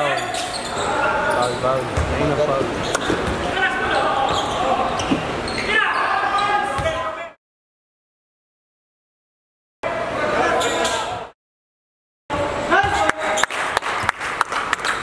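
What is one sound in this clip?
Basketball shoes squeak on a hardwood court.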